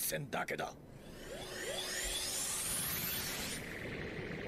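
A swirling whoosh rises in pitch and grows louder.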